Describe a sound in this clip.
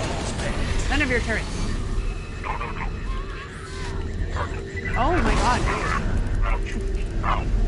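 Electronic sound effects chirp and warble over a low rumble.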